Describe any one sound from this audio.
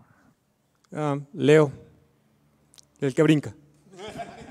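A young man answers into a microphone.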